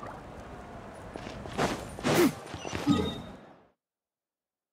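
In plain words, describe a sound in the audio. A game character's footsteps patter on stone.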